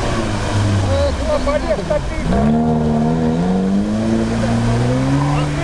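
Water splashes and churns around tyres.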